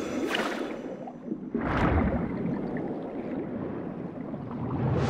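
Muffled underwater rumbling and bubbling goes on throughout.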